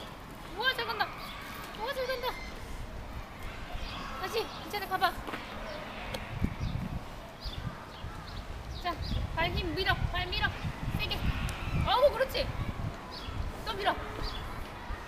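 A woman speaks nearby in a lively, coaxing voice.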